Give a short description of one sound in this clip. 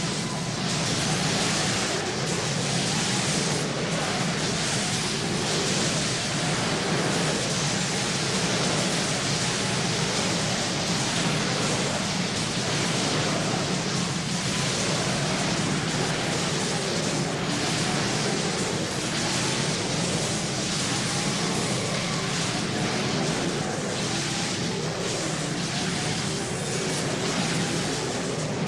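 Magic spells and blows crash in a fast fight.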